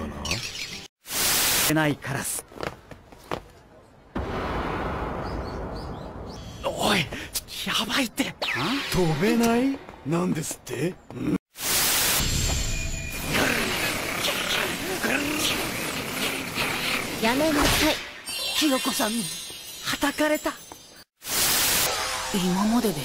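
Loud television static hisses in short bursts.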